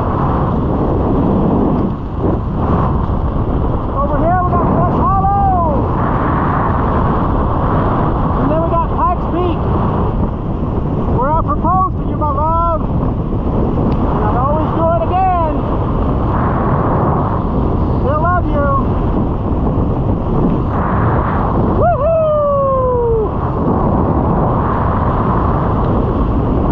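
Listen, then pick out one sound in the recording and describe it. Wind rushes loudly and steadily past, as if heard while flying under a canopy.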